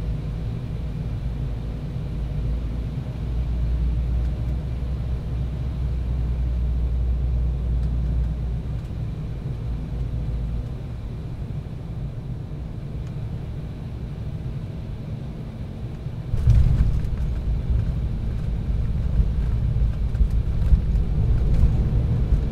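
Jet engines roar steadily from inside an airliner cabin.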